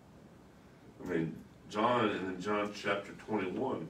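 A man speaks calmly nearby, as if reading aloud.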